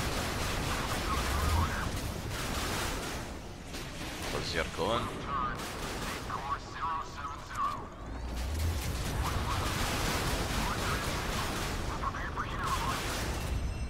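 Naval guns fire in rapid bursts.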